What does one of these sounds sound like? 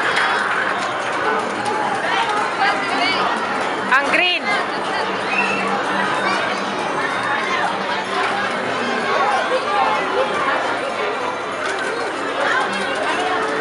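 Children and adults chatter all around.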